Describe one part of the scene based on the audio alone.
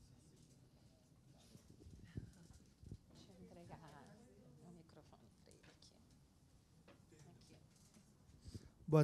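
A crowd of people murmurs quietly in a room.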